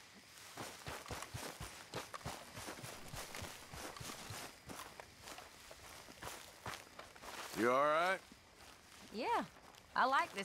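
Footsteps tread through grass at a steady walking pace.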